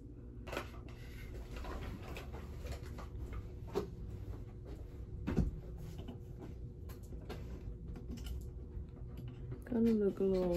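A young woman speaks quietly and calmly close by.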